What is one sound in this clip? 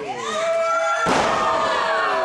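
A wrestler lands hard with a thud on the ring mat.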